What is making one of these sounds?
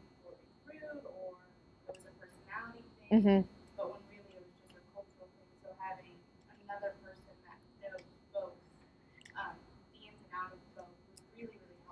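A young woman speaks calmly to a room, heard from a distance.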